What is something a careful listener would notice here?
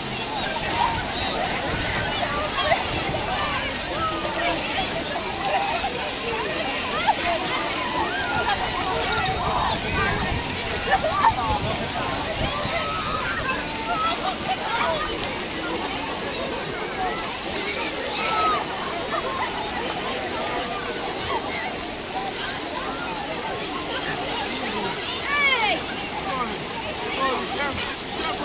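A large crowd of children and adults chatters, shouts and laughs all around, outdoors.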